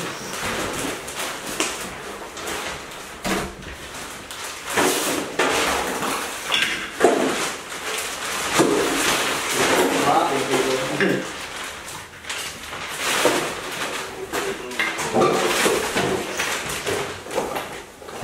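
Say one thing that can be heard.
Clutter clatters as it is moved about.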